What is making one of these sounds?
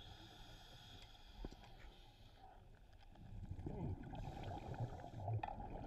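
Air bubbles gurgle and burble from a diver's breathing regulator underwater.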